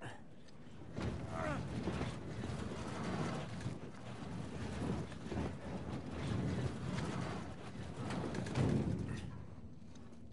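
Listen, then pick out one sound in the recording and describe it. A heavy wooden crate scrapes across a stone floor.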